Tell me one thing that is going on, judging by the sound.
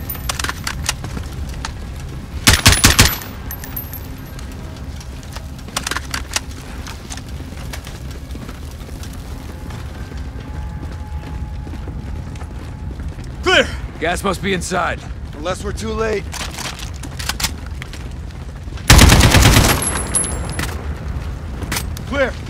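Rifles fire in loud, rapid bursts.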